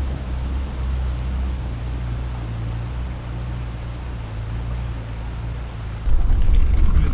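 A shallow river rushes steadily.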